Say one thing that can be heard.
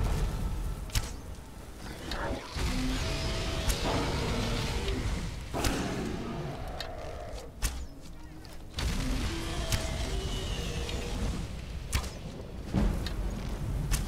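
A bow string twangs as arrows are shot.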